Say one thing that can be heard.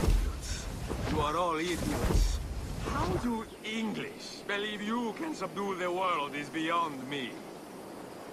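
A man speaks loudly and with animation nearby.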